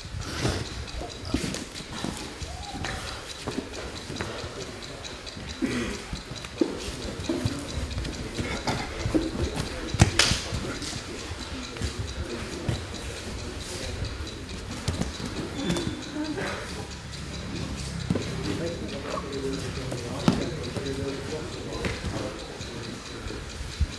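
Bare skin squeaks and rubs against a mat.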